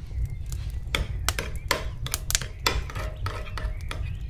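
A spoon clinks against a glass bowl.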